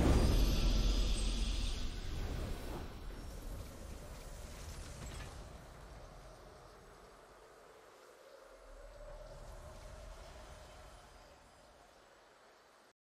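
A triumphant fanfare swells and slowly fades away.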